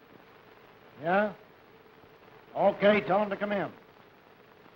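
A man speaks into a telephone.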